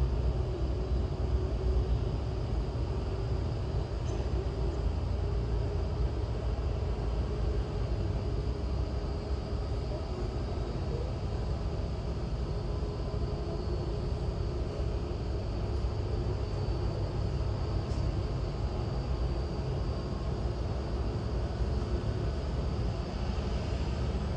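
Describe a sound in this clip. Jet engines of an airliner hum and whine steadily as it taxis nearby.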